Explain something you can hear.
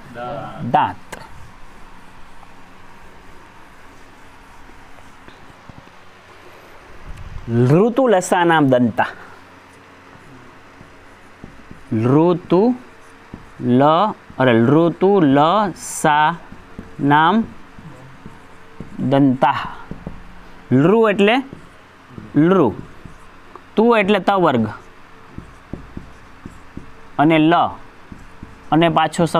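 A man speaks clearly and steadily, as if explaining, close by.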